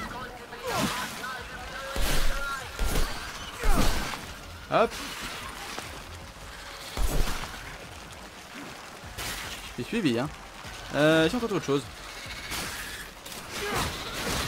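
Staff blows thud against creatures in a video game fight.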